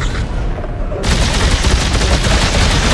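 A gun fires in short bursts.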